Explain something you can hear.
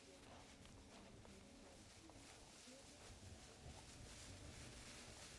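Horses' hooves thud on soft grassy ground.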